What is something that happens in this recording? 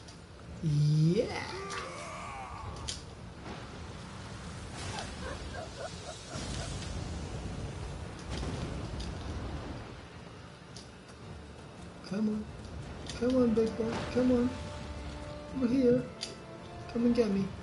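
A monster lets out eerie wailing cries.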